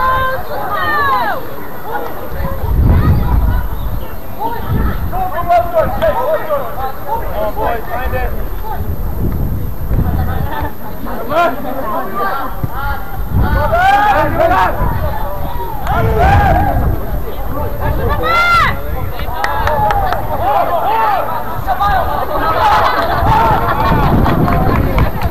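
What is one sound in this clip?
Players call out to one another far off across an open field.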